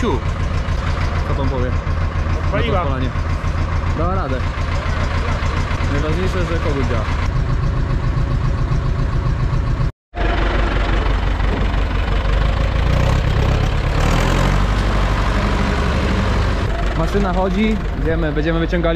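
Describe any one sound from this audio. A tractor engine idles with a steady, low chugging throughout.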